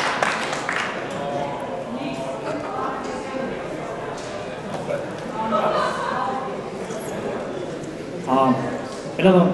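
A man speaks into a microphone in a large hall.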